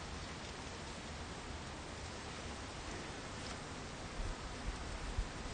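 Wind rustles through tall grass.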